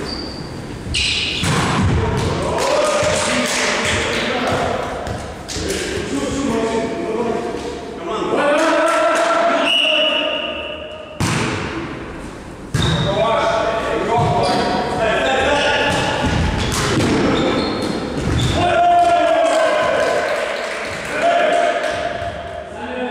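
Men shout and call out to each other during play.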